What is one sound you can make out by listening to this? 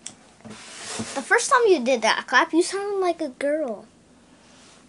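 A young boy talks excitedly close by.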